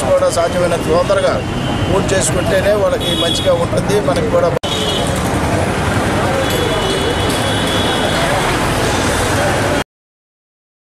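A crowd of men talk and murmur all around, outdoors.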